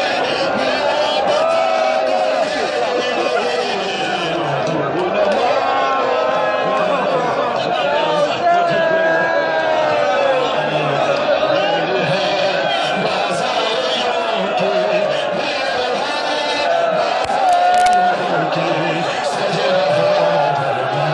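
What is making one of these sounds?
A large crowd of men chants loudly together in a dense, echoing space.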